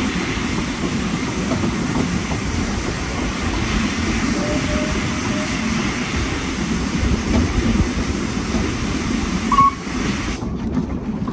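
Wind rushes past an open train window.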